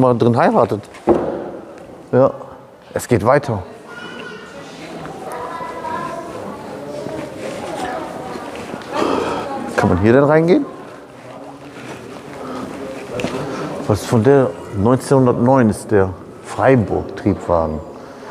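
A middle-aged man talks calmly and with animation close by, in a large echoing hall.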